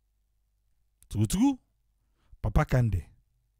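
An elderly man speaks through a microphone.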